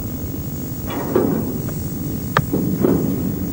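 Metal clanks sharply a few times.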